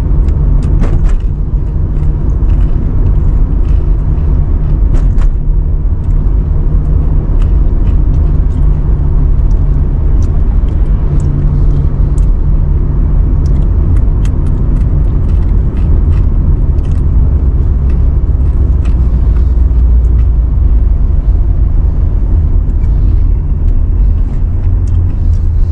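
Tyres roll steadily over the road.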